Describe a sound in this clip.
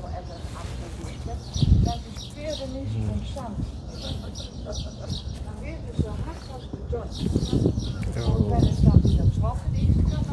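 An elderly woman speaks calmly outdoors.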